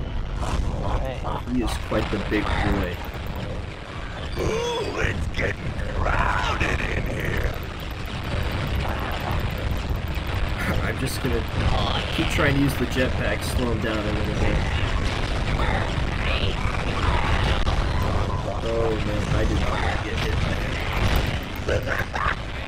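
Cartoon creatures fight with zapping blasts and thumping hits.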